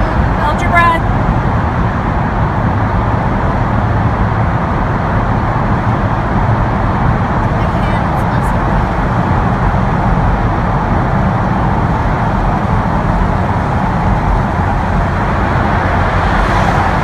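Tyres roar steadily on the road, echoing in a tunnel.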